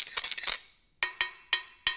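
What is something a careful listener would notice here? A wooden spoon strikes a metal colander with sharp clanks.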